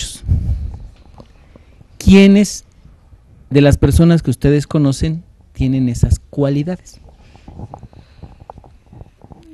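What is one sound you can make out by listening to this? A boy answers into a microphone.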